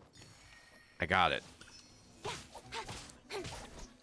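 A blade swings and strikes with a sharp whoosh.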